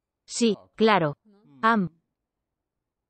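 A woman speaks animatedly, close by.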